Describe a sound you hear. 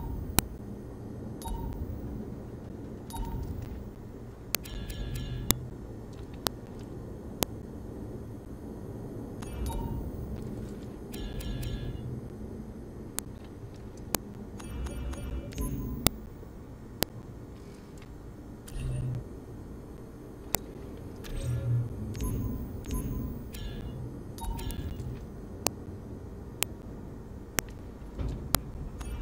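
Short electronic clicks and beeps sound as menu items are selected.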